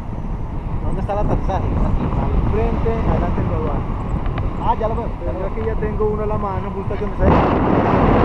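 A man talks close to the microphone over the wind.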